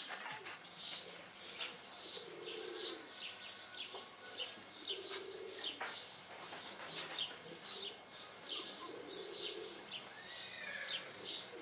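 Puppies growl softly as they play-fight.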